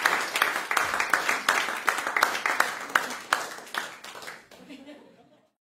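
An audience applauds in a hall and the clapping fades out.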